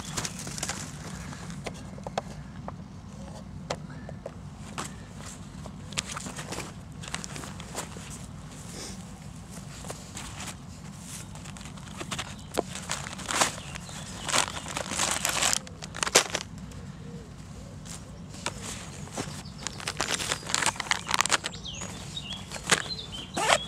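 Fabric rustles and buckles click as a bag is handled and packed.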